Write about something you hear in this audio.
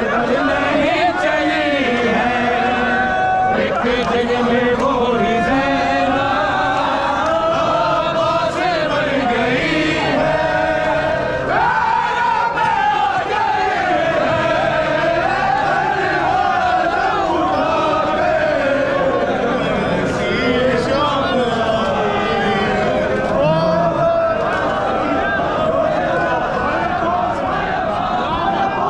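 A large crowd of men chants loudly together in a large echoing hall.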